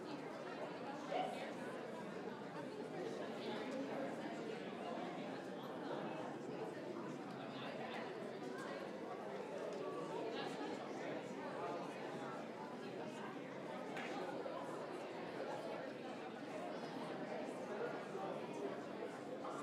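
An audience murmurs and chatters in a large echoing hall.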